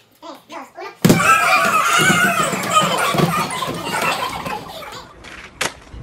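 A group of teenage boys shout and laugh excitedly close by.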